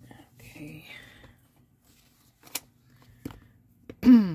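Paper rustles softly under hands.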